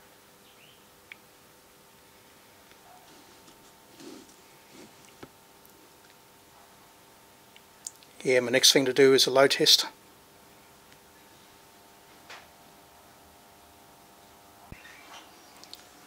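An electrical hum drones steadily and quietly.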